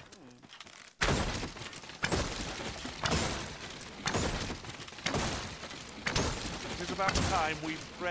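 A sword strikes and smashes wooden crates.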